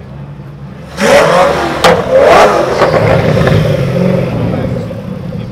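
A sports car engine revs hard with a sudden loud roar and sharp pops.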